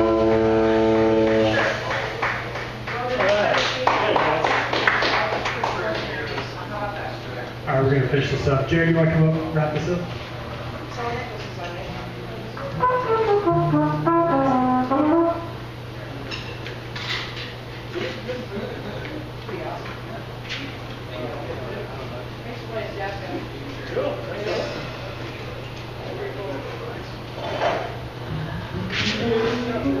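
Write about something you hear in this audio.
A double bass plays a walking line.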